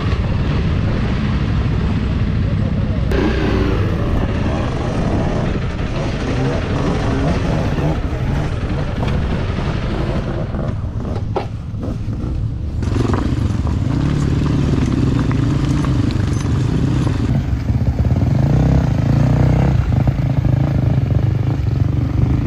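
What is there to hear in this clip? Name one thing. Tyres crunch over loose stones.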